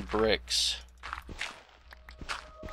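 A shovel digs into soft blocks with short scraping crunches.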